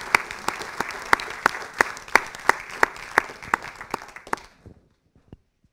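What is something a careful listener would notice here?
An audience applauds and the clapping fades out.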